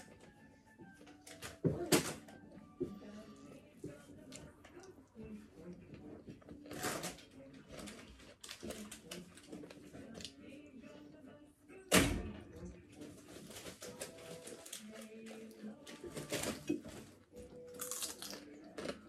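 Fingers peel and crack shells over a plate.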